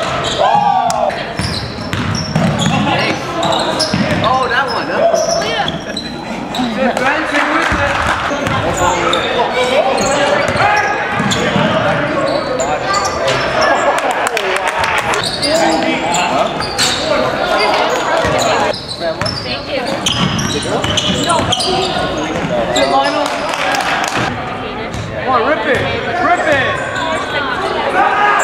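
Sneakers squeak on a hard court floor in a large echoing gym.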